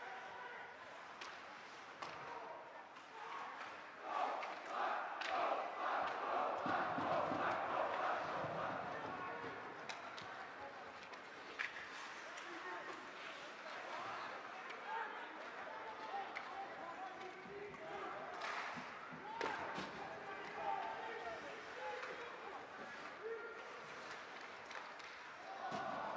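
A crowd of spectators cheers and chatters in an echoing rink.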